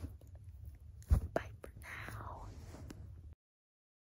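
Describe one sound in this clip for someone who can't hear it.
Fingers rub and tap against the microphone.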